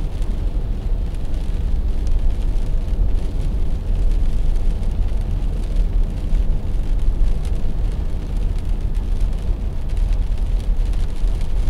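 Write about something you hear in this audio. Raindrops tap lightly on a windscreen.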